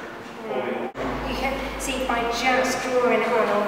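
A woman speaks calmly nearby.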